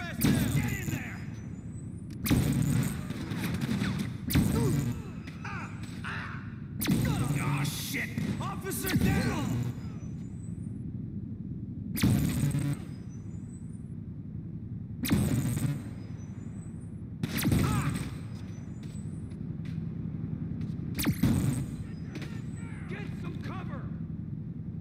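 A stun gun fires again and again with loud, crackling electric bursts.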